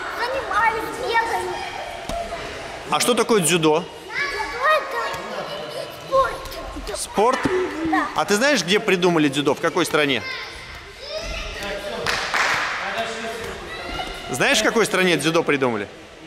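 A ball slaps against a boy's hands.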